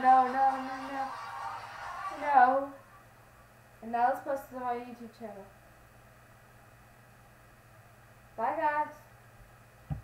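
A young girl sings close by, in short phrases.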